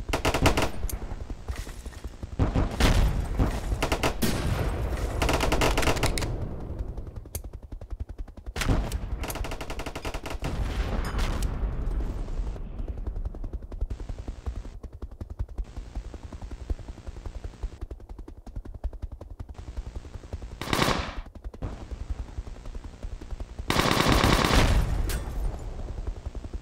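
A helicopter's rotor chops steadily.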